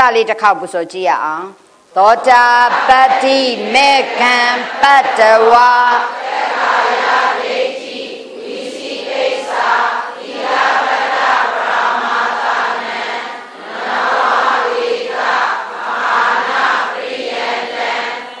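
A middle-aged woman chants and recites through a microphone.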